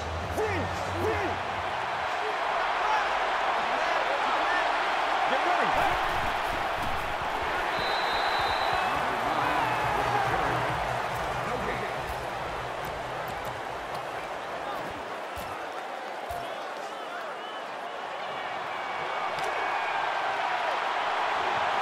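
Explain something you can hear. A large stadium crowd roars and cheers steadily throughout.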